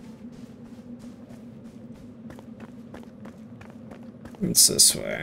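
Footsteps tread steadily on the ground.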